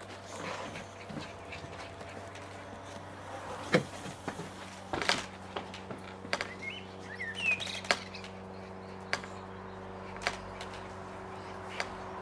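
A wooden swing frame creaks and knocks as someone swings.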